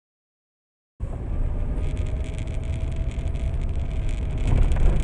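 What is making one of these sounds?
A car engine rumbles loudly from inside the car.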